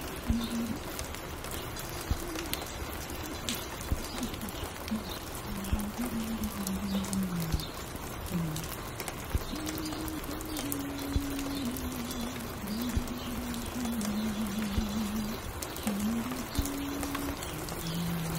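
Vinyl crackles and pops softly on a spinning record.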